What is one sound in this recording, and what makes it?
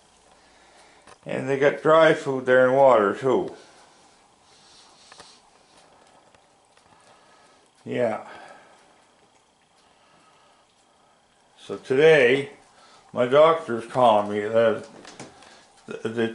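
A cat eats and chews food close by.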